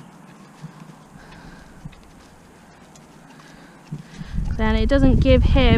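A pony's hooves thud softly on grass as it walks.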